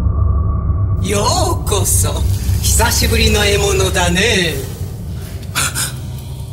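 A monstrous creature speaks in a deep, menacing voice.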